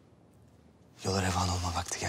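A man speaks in a deep, calm voice.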